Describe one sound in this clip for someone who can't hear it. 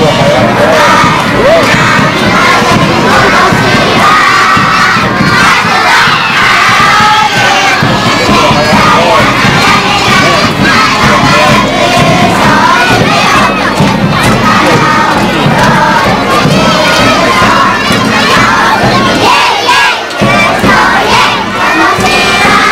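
A crowd of young children cheers and shouts loudly outdoors.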